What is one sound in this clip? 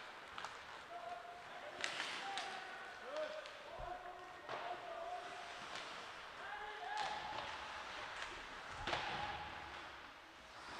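Players shout to each other across the rink.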